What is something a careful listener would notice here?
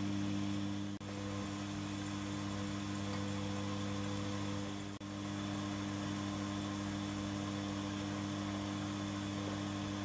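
An electric milling machine motor hums steadily.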